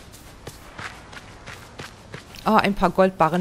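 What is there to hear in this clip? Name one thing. Footsteps patter quickly along a dirt path.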